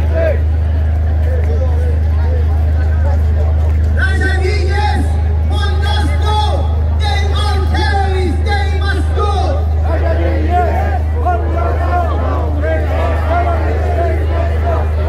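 A crowd of protesters chatters outdoors.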